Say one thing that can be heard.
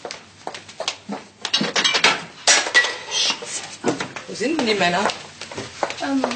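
Dishes clatter and clink.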